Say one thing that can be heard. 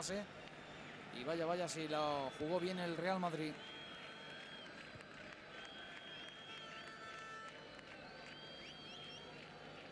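A large stadium crowd murmurs and cheers steadily in the open air.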